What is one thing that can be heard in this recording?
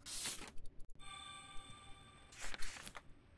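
A bright game chime rings.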